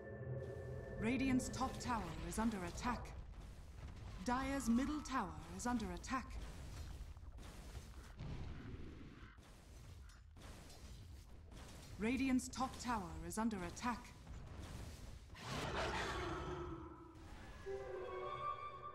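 Video game sound effects clatter and chime.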